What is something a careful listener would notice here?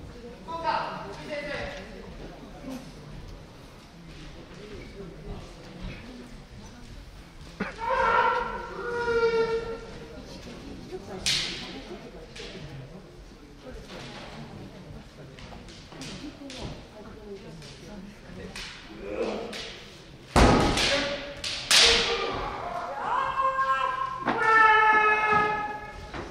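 Men shout sharp battle cries in a large echoing hall.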